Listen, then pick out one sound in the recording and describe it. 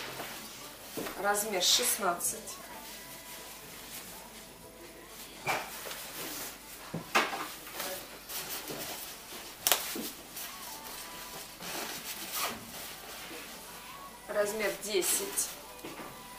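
A padded nylon jacket rustles and swishes as it is handled.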